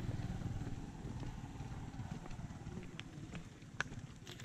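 A motorbike engine hums in the distance.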